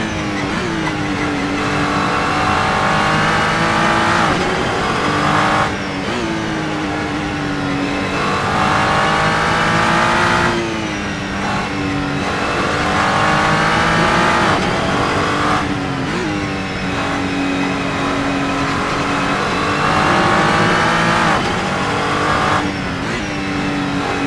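A racing car engine roars loudly, revving up through the gears and dropping in pitch at each shift.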